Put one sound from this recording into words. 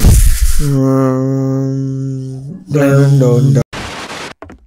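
A low musical tone sounds and fades.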